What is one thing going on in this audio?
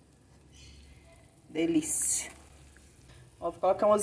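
A wooden spoon stirs a thick creamy sauce.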